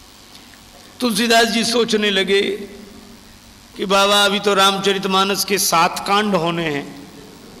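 A man sings in a steady, drawn-out chant through a microphone.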